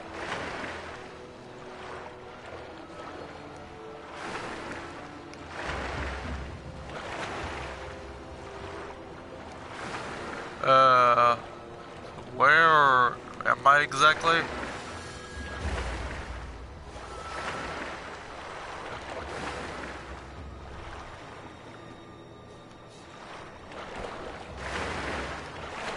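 Footsteps rustle softly through tall grass.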